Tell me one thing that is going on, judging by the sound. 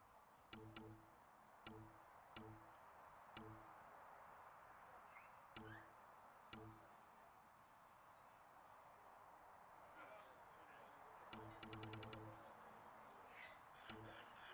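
Short electronic menu clicks sound as a selection moves through a list, with a quick burst of clicks near the end.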